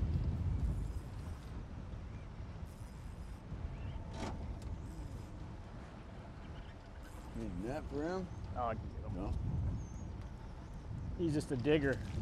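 Water laps against the side of a small metal boat.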